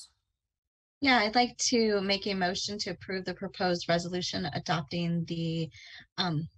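A woman speaks calmly through an online call.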